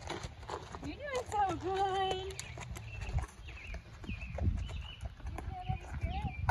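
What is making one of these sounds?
A young girl talks happily close by.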